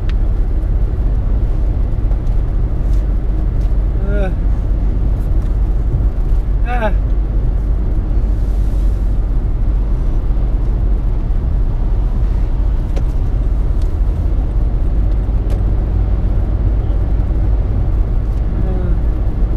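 Tyres roar steadily on a highway from inside a moving car.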